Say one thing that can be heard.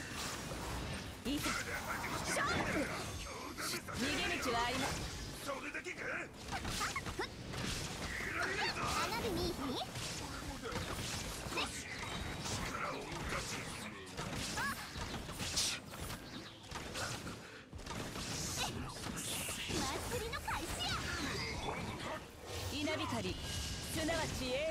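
Blows and blasts strike in quick succession.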